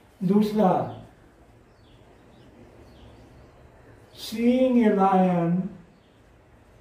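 An older man speaks slowly and calmly, drawing out his words.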